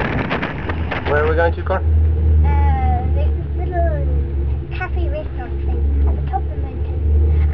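A young boy speaks calmly up close.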